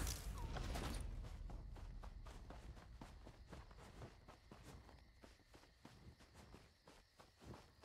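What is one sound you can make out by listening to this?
Footsteps rustle through grass at a steady pace.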